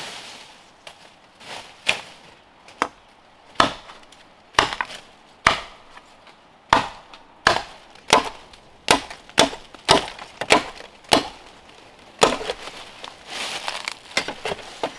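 A blade chops sharply and repeatedly into a bamboo stalk.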